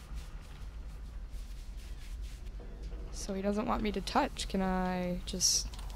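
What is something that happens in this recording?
A stiff brush scrubs cloth.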